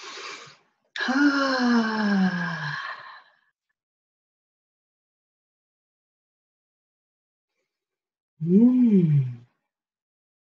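A woman sighs with a long falling voice.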